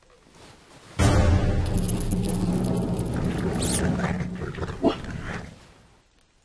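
A wolf growls low and steadily.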